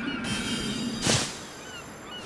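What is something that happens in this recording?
A body lands with a heavy thud.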